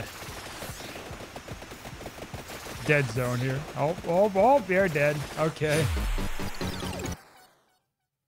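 Rapid electronic game attack effects crackle and chime.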